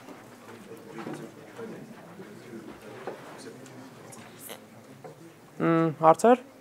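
A man speaks to an audience in a room with a slight echo.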